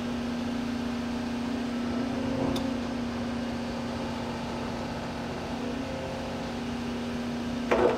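An excavator bucket scrapes into soil.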